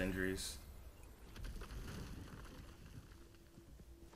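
A heavy wooden door rumbles open.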